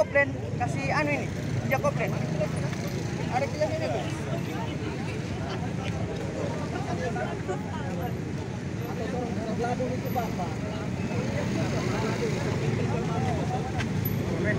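A crowd of people shout and talk loudly nearby.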